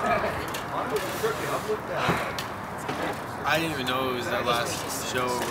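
Young men talk and laugh together outdoors.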